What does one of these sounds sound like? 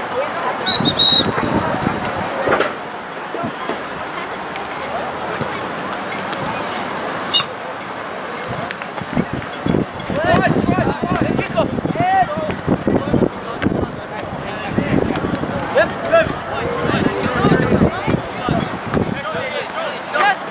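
Players shout and call to each other across an open field outdoors.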